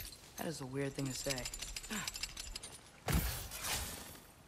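A chain rattles and clanks as it is climbed.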